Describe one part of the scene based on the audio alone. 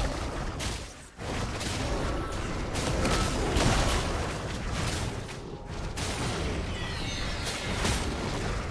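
Magic spells and weapons clash and crackle in a game battle.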